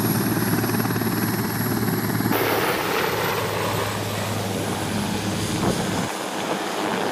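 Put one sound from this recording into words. A helicopter's rotor thumps loudly nearby.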